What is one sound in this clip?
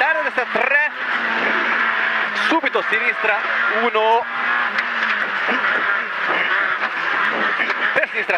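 A rally car engine revs hard from inside the cabin.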